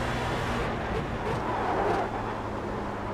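Tyres screech briefly through a corner.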